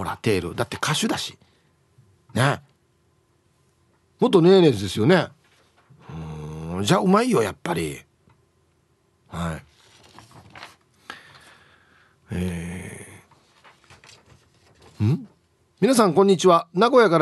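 A man talks with animation, heard closely through a microphone.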